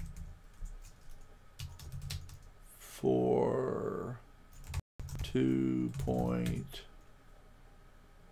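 A keyboard clatters with quick key presses.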